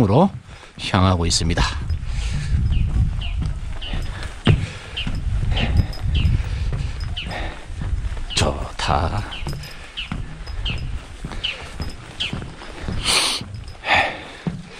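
Footsteps thud on wooden boardwalk planks.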